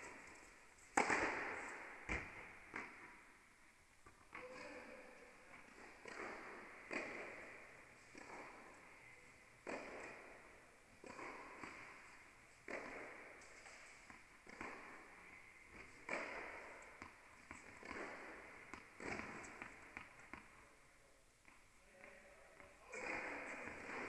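Tennis rackets strike a ball back and forth, with each hit echoing through a large indoor hall.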